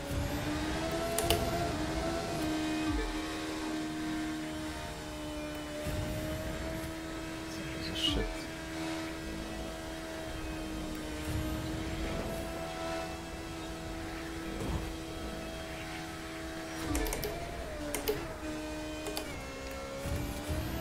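A racing car engine whines at high revs, dipping briefly as it shifts gear.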